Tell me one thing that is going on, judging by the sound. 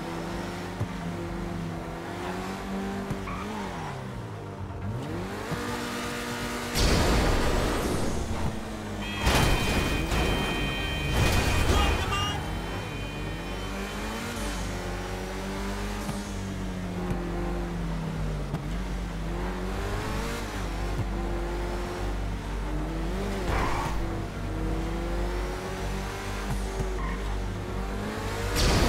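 A car engine roars and revs up and down as the car speeds along.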